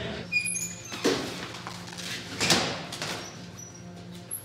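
A metal locker door bangs and rattles as it is opened.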